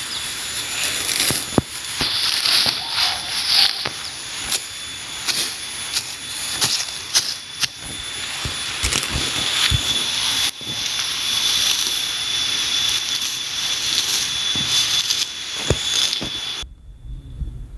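A machete chops and scrapes at grass and soil.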